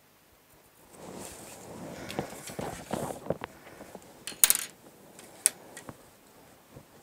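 Plastic rulers slide and clack on a wooden table.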